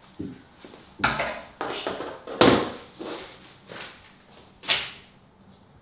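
Objects knock and clatter on a wooden floor.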